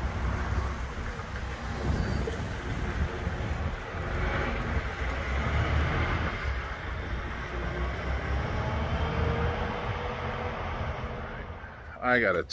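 Wind rustles tree leaves.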